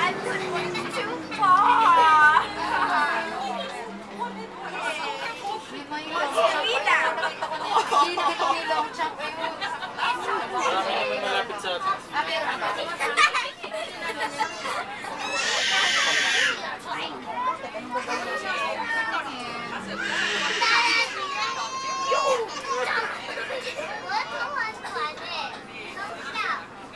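Several people talk nearby.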